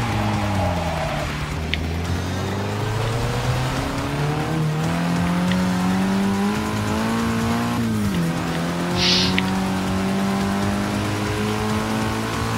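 A car engine roars, its revs climbing and then dropping sharply as it shifts gear.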